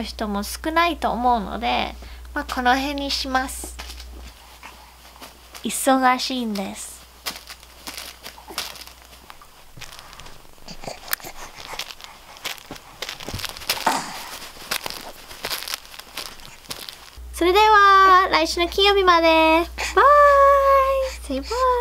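A young woman speaks warmly and close to the microphone.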